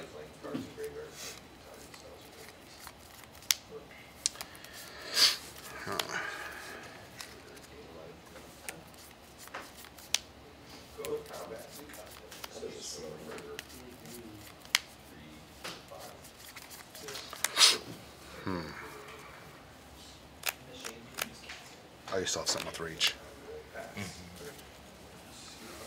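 Playing cards tap and slide on a soft mat.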